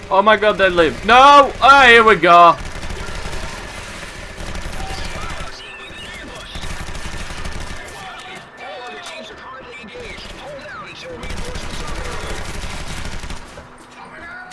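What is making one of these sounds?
Automatic gunfire rattles in bursts.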